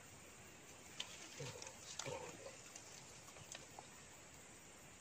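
Leaves and grass rustle close by as a rod is pushed through the undergrowth.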